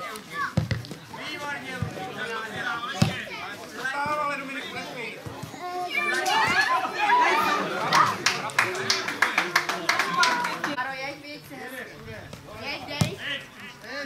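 A football thuds as children kick it on grass.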